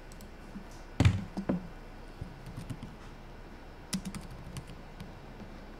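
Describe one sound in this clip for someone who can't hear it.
Fingers tap on a laptop keyboard.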